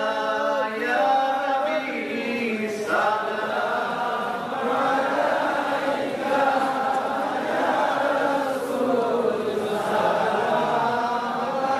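A middle-aged man chants loudly and fervently into a microphone, heard through loudspeakers.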